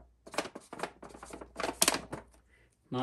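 A marker squeaks on foil as it writes.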